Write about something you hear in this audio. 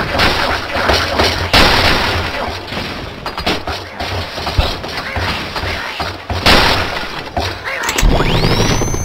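Wooden and stone blocks crash and clatter as a structure collapses.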